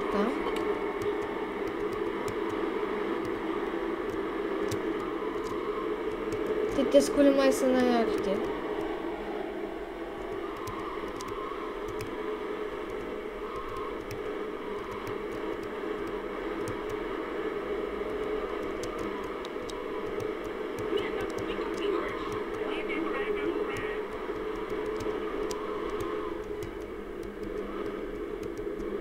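A car engine hums steadily as a car drives along a street.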